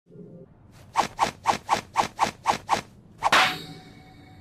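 Hands slap together in quick rhythmic claps.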